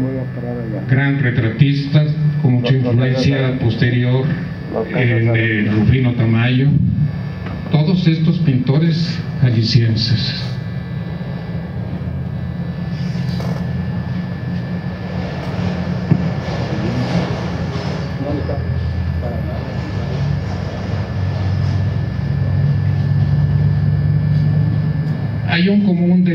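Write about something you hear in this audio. An elderly man speaks calmly through a microphone and loudspeaker.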